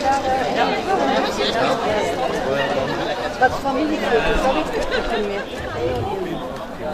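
A crowd chatters outdoors in the background.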